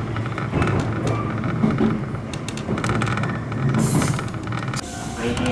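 A train rumbles along the tracks with a steady low roar.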